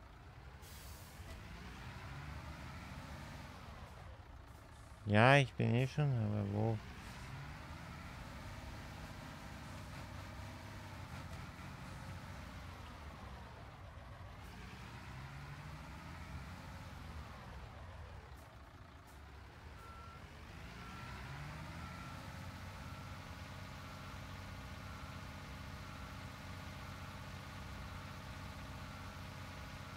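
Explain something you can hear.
A heavy truck engine rumbles and revs as the truck drives.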